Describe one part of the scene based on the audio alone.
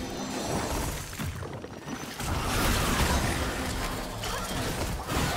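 Game spell effects crackle and burst in a busy fight.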